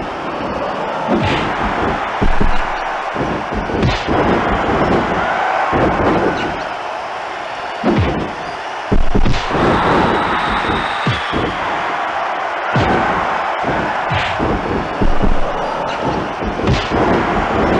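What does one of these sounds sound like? A large crowd cheers loudly and steadily.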